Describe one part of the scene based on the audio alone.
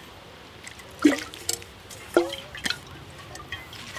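Something knocks against a metal bottle.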